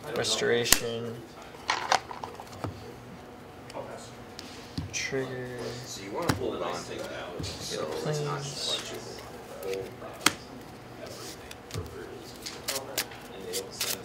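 Cards riffle and shuffle in hands.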